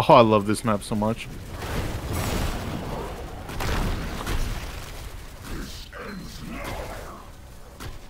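Fighting sound effects from a video game clash and crackle in quick bursts.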